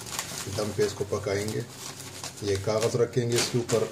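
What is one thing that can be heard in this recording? Newspaper pages rustle as hands handle them.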